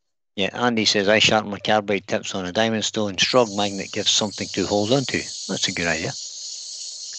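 A man talks calmly, close by.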